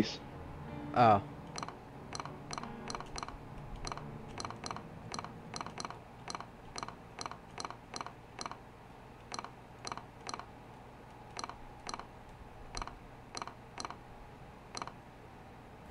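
Short game menu clicks tick in quick succession.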